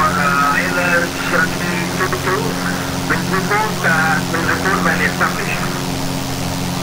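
A young man speaks calmly into a headset microphone.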